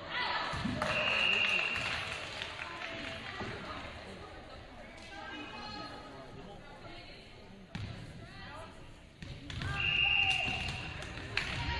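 A referee's whistle blows shrilly in an echoing gym.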